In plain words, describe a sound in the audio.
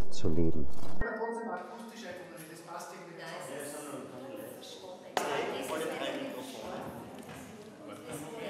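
A choir sings together in a room.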